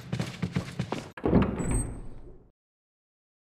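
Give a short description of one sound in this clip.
A heavy wooden door swings open with a rumble.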